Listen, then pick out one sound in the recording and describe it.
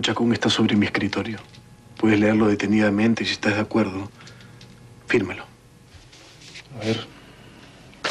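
A young man speaks into a phone with urgency.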